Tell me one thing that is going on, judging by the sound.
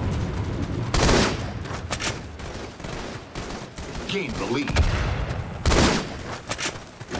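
A sniper rifle fires loud, sharp shots that echo briefly.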